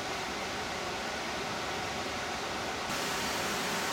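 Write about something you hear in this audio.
River water rushes over a weir.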